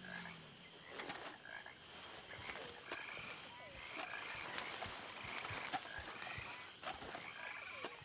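Footsteps rustle through tall grass and leaves.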